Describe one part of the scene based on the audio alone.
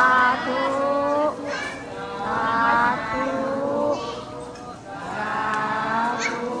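A group of young women chant together in unison.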